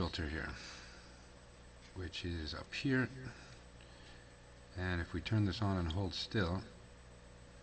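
A middle-aged man speaks close to a microphone in short bursts.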